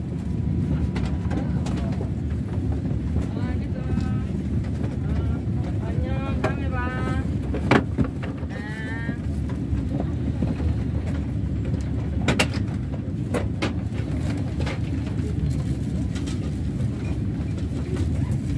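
A train's engine hums steadily and low inside the carriage.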